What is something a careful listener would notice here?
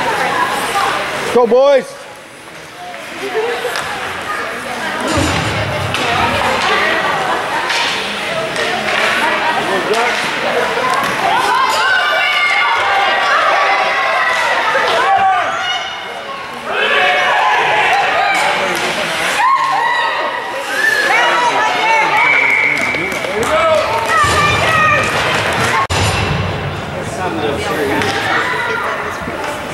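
Nearby spectators chatter and call out in an echoing rink.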